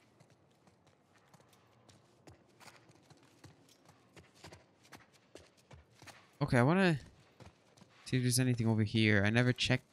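Footsteps walk slowly across a hard, gritty floor.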